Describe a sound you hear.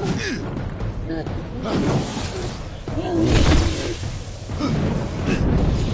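Blades clash and thud in combat.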